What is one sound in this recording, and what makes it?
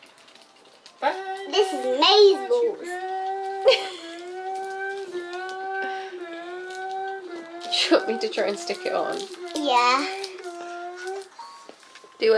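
A young girl talks and sings in a high, drawn-out voice close by.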